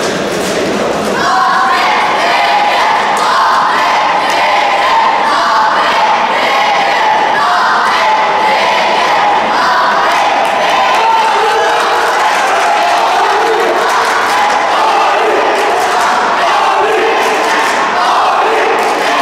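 A large crowd chants and cheers loudly in a big echoing hall.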